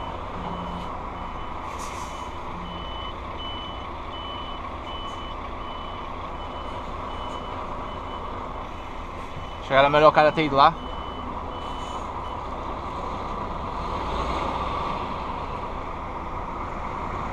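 A truck engine hums steadily.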